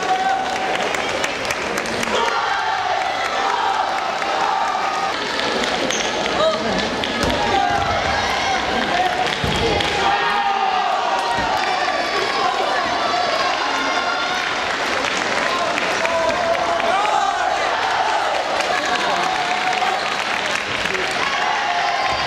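A table tennis ball clicks against paddles and the table.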